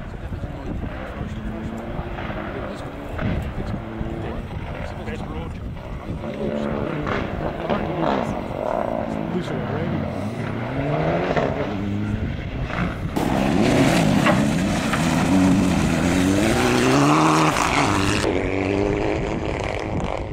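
A rally car engine revs hard, rising and falling in pitch as it roars past up close.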